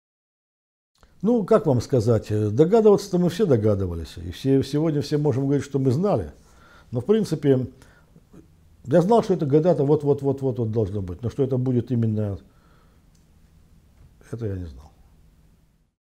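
An elderly man speaks calmly and steadily, close to a microphone.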